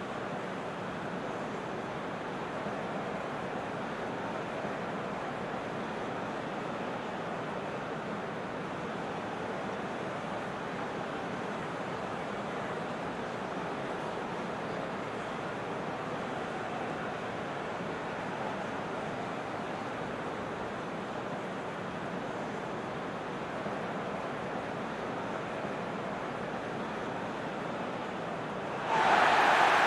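A large stadium crowd roars steadily, swelling louder at the end.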